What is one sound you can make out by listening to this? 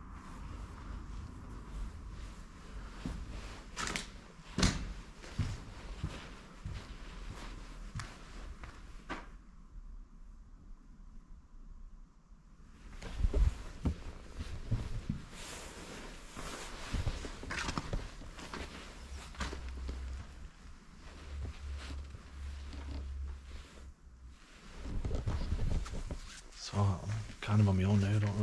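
Footsteps crunch over debris on the floor.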